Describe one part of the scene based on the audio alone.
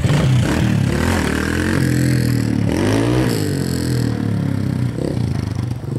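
A dirt bike engine revs as the bike pulls away.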